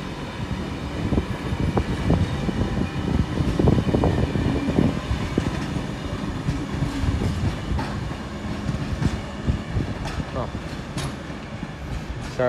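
Train wheels rumble and clatter loudly over the rails, then ease off.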